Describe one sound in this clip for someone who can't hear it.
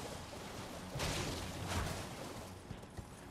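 A horse's hooves clop on rock.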